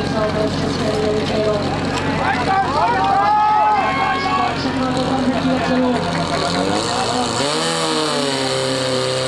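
A portable fire pump engine runs.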